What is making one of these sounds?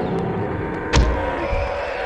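A crossbow fires with a sharp snap.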